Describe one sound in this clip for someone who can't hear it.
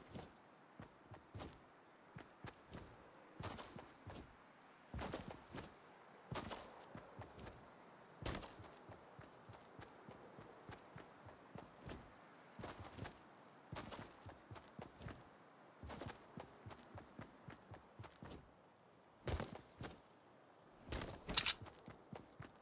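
Footsteps thud quickly on grass.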